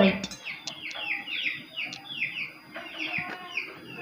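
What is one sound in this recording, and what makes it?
A glass is set down on a metal plate with a light clink.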